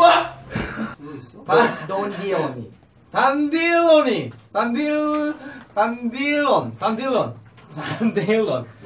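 Several young men talk and laugh together.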